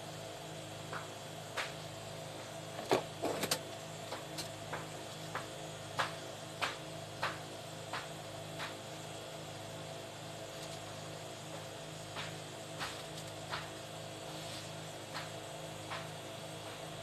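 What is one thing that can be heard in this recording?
Metal probes tap and click against a circuit board.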